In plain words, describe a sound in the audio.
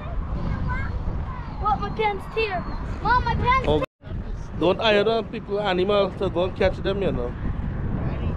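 Children talk and shout excitedly close by.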